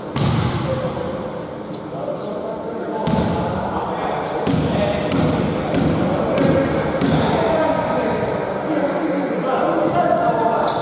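Several players call out to each other.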